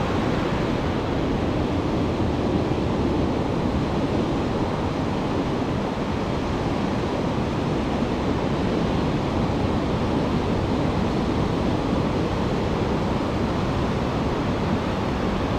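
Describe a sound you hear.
Waves break and wash steadily onto a beach nearby.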